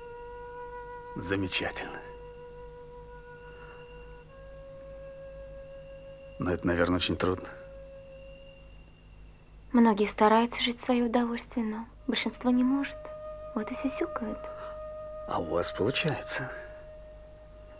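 An older man speaks calmly and close by.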